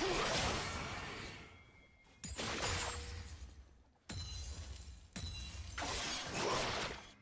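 Game spell effects burst and whoosh in loud waves.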